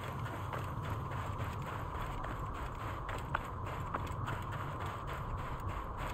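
Footsteps run quickly over sand.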